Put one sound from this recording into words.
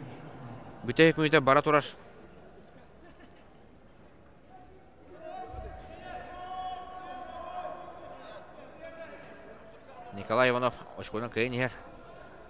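Spectators shout loudly in a large echoing hall.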